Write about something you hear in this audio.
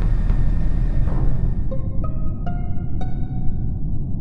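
A game chime plays a quick run of rising tones.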